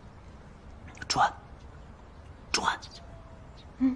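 A young man says a single word nearby.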